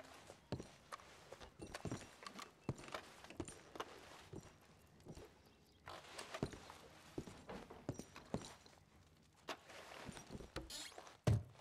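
Footsteps thud on wooden floorboards indoors.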